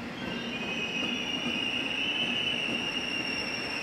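Another train passes close by with a rushing whoosh.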